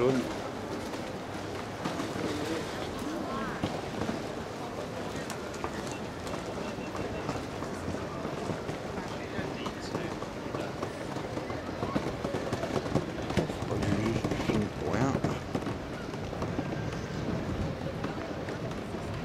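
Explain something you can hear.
A crowd of people murmurs in the distance outdoors.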